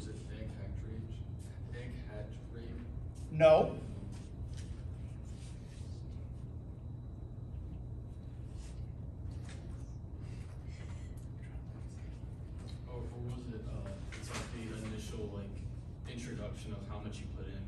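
A man lectures calmly, heard from across a room.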